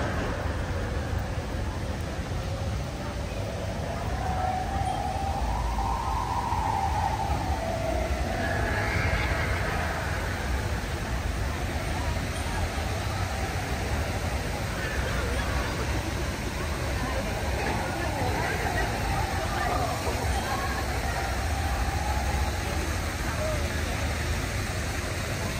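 Voices of a crowd murmur outdoors all around.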